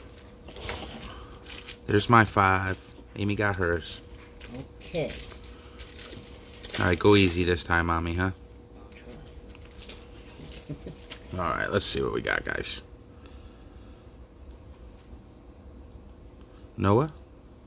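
Plastic-sleeved cards rustle and click as they are handled.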